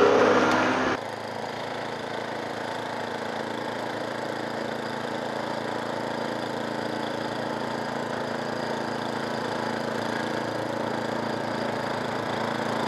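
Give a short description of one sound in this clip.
A snowblower engine drones steadily close by.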